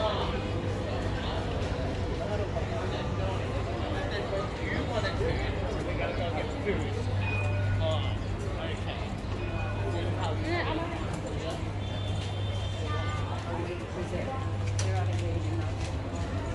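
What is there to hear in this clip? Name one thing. A busy crowd murmurs and chatters nearby.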